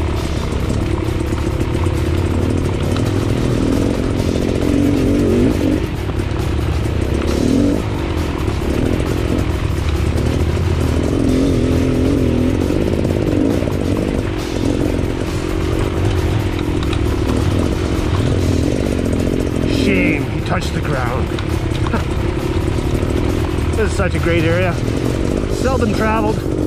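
A second dirt bike engine buzzes a short way ahead.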